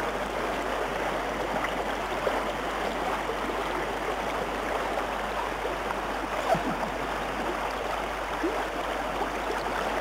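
Rushing water roars steadily.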